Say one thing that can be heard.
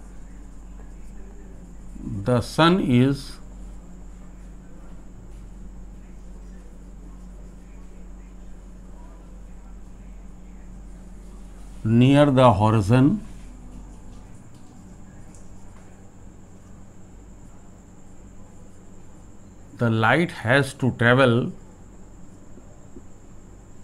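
A marker writes on paper.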